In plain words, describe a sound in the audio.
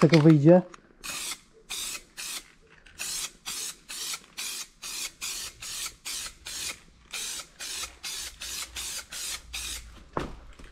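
A spray can hisses in short, repeated bursts.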